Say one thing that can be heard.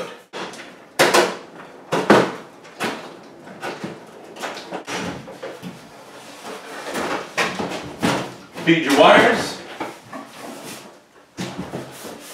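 A sheet metal hood clanks and rattles.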